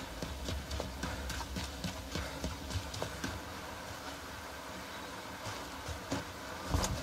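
Footsteps tread on pavement.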